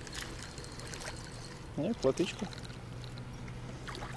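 A fishing reel clicks as line winds in.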